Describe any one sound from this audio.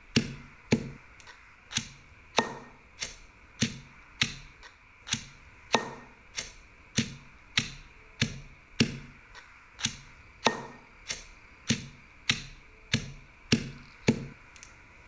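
A pestle pounds in a mortar with steady, rhythmic thuds.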